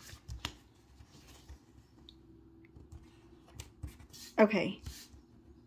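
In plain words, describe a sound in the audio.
Paper rustles softly as a sticker is peeled and pressed down.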